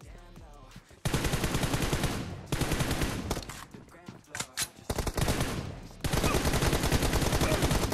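Rapid gunfire rattles in bursts from a video game.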